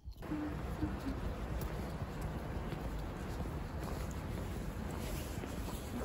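Footsteps scuff on a paved path outdoors.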